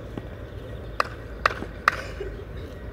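A tennis ball bounces a few times on a clay court.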